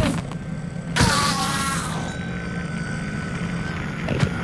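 A creature cries out in pain and dies.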